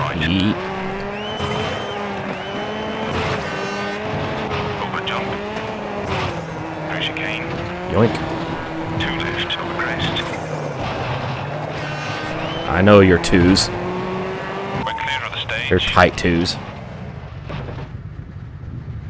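A rally car engine roars and shifts through gears.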